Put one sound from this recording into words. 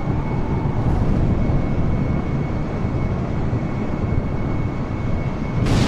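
A high steady whine from the jet engines hums underneath.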